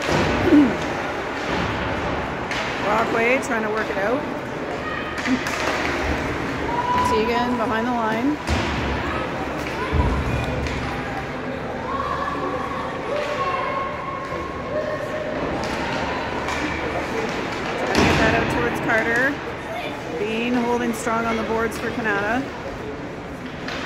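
Spectators talk nearby in a large echoing arena.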